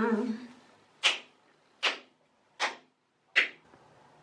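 Hands pat softly against skin four times.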